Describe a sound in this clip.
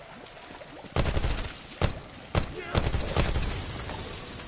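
Gunshots fire in a few loud bursts.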